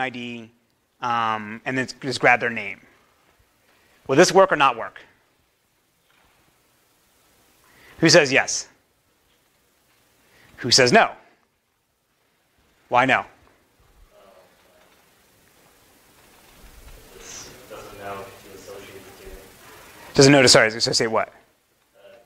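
A man lectures through a microphone in a large room, speaking in short bursts with pauses.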